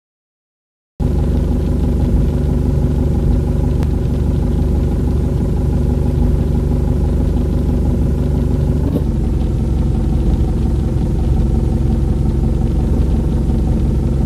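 A bus engine idles with a steady low rumble.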